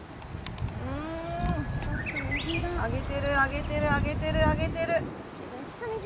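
A young woman exclaims in a high voice.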